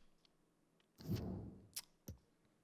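A soft whoosh sweeps past as a menu changes.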